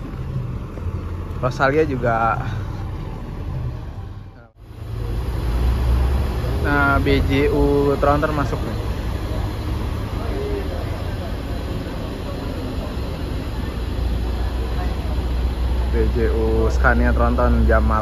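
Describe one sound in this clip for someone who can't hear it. A bus engine rumbles nearby.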